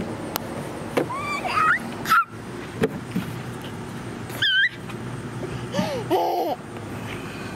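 A toddler girl squeals and shrieks playfully close by.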